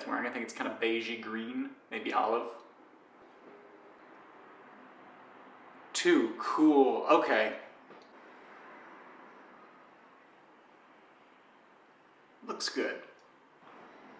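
An elderly man speaks calmly in short phrases.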